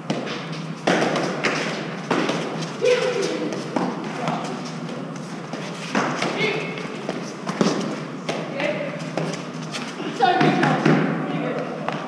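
A fives ball slaps off gloved hands and stone walls in an echoing court.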